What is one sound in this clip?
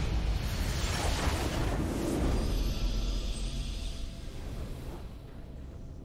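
A loud magical whoosh bursts out and fades away.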